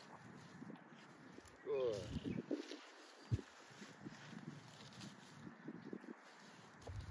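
A dog sniffs and snuffles through grass.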